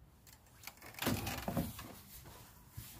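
A padded jacket rustles as a man gets up.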